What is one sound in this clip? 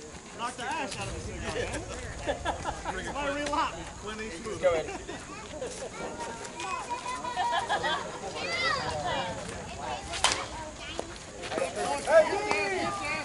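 Men and women call out and chatter outdoors.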